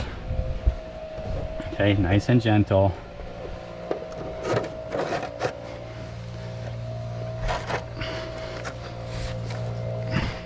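Thin sheet metal crinkles and scrapes as a hand presses it into place.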